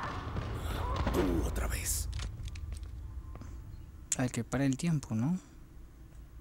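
A man mutters quietly.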